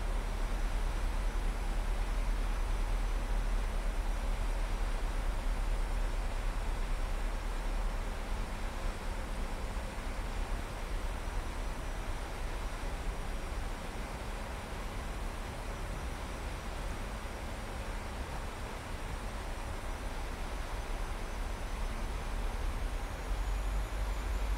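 Jet engines roar steadily with a constant rush of air around the cockpit.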